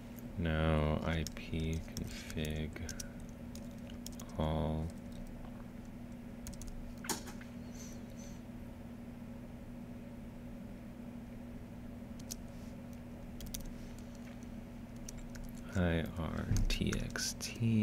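Keys clatter on a keyboard in short bursts.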